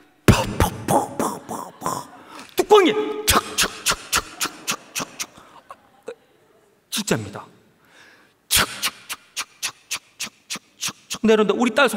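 A young man preaches with passion through a microphone in a large echoing hall.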